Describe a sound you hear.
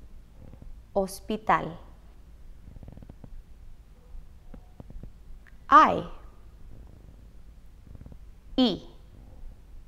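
A young woman speaks short words clearly and close to a microphone.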